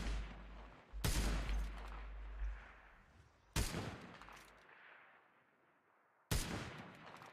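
A rifle fires single shots.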